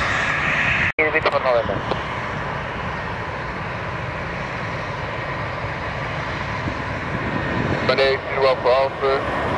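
An approaching airliner's engines whine and rumble overhead.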